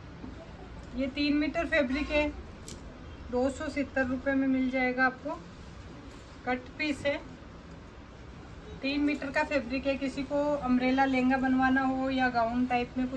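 A young woman talks calmly and clearly close by.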